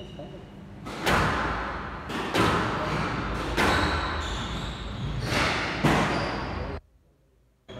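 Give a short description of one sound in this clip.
A squash ball smacks hard against the walls in an echoing court.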